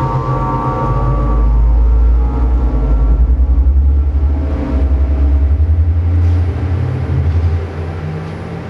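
A deep rumbling electronic bass throbs and pulses.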